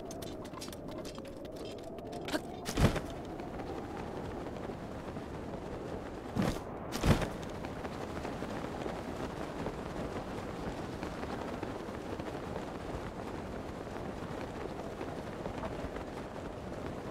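Wind rushes steadily past a glider in flight.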